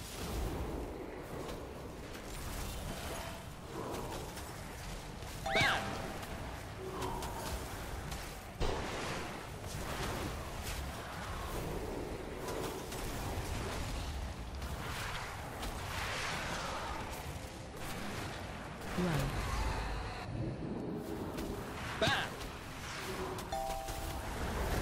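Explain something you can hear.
Magic spells whoosh, crackle and burst in quick succession.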